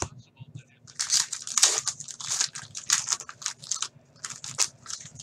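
Plastic wrapping crinkles and tears.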